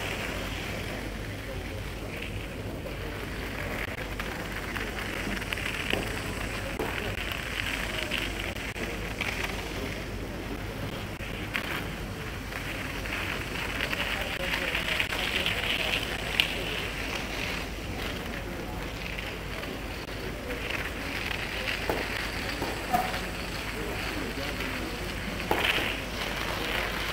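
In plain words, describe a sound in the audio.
A crowd murmurs softly in the distance.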